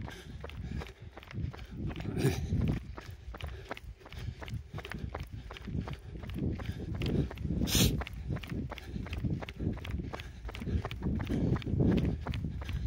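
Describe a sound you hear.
Footsteps tap steadily on an asphalt road.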